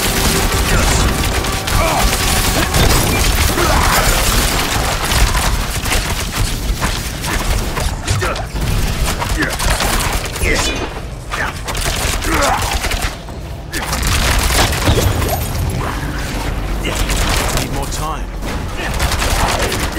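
Magic blasts crackle and boom in a video game battle.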